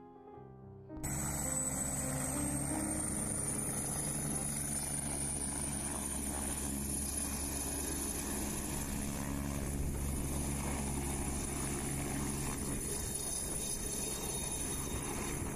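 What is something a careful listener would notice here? A helicopter engine whines and rumbles steadily close by.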